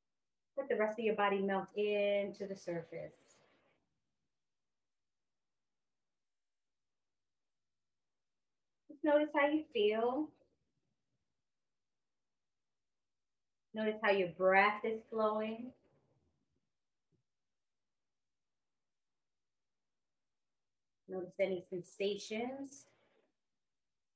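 A woman speaks calmly and slowly into a close microphone, with long pauses.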